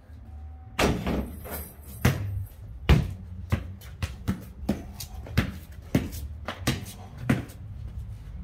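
A basketball bounces on concrete, again and again.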